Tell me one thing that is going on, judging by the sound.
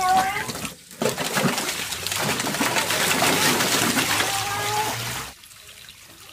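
Water pours from a pipe and splashes into a tub.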